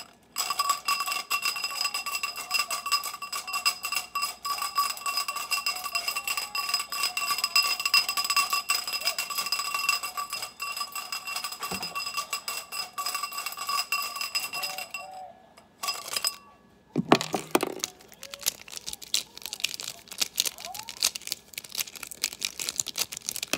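Markers rattle and clack together.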